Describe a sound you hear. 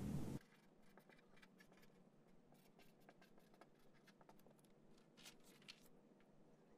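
A marker squeaks and scratches softly on paper.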